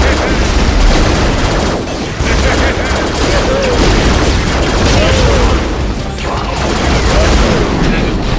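Laser blasts zap rapidly.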